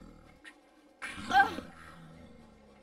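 A creature grapples and tears at a body with a wet struggle.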